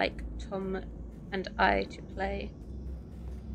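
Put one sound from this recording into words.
A middle-aged woman talks with animation close to a microphone.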